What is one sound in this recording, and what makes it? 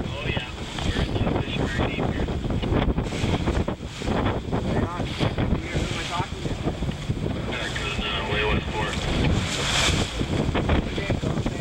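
Strong wind roars and buffets close by.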